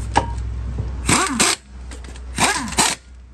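An air impact wrench rattles loudly in short bursts.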